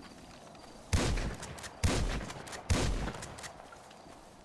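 A rifle fires several loud, sharp shots outdoors.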